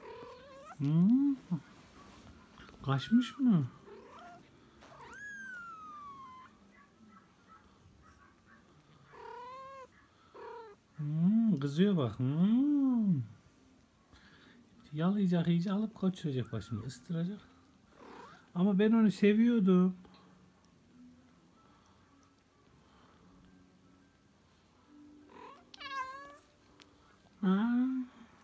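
A kitten mews repeatedly, close by.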